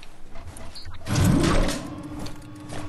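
A metal cage lift clanks shut with a loud bang.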